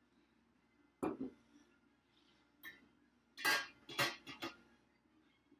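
A metal pot clanks and scrapes on a hard counter.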